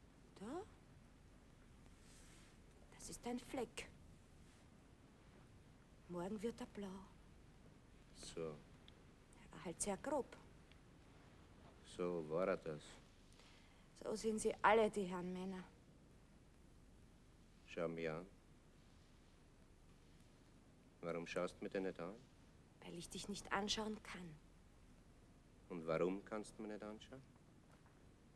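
A man speaks quietly and earnestly, close by.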